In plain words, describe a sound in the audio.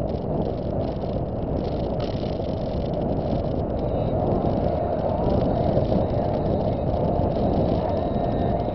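Tyres roll on the road with a steady low rumble.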